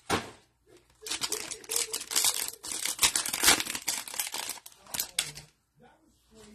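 A foil wrapper crinkles loudly as it is torn open.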